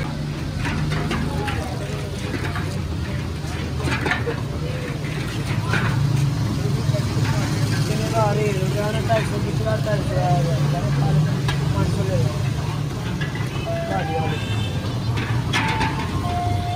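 Metal bowls clink and scrape against a metal tray.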